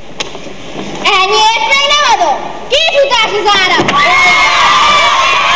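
A group of children sing together.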